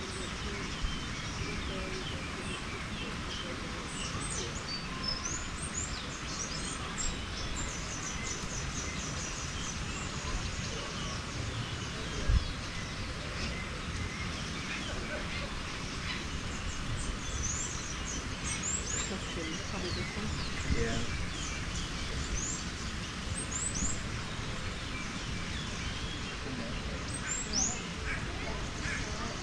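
Wind rustles outdoors and buffets the microphone.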